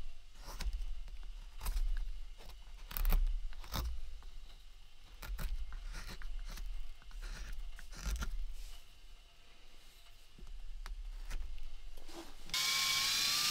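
A knife scrapes and shaves thin curls from a wooden stick.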